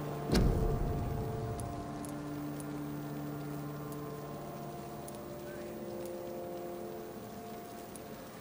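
Soft menu clicks sound several times.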